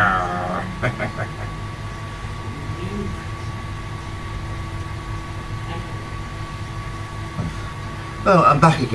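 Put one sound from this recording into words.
A man speaks in short muffled bursts close by.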